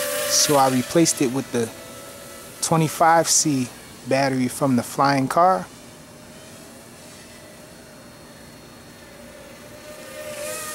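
A small toy quadcopter's motors whine as it hovers.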